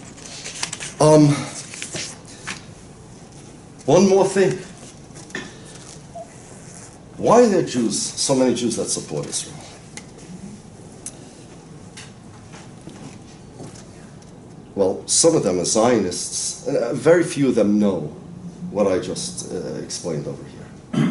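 A middle-aged man lectures calmly into a microphone, with pauses.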